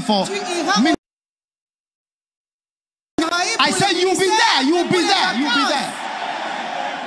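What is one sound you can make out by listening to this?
A man preaches loudly into a microphone in a large hall.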